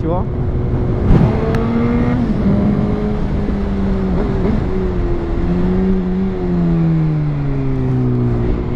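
A motorcycle engine drones and shifts pitch while cruising.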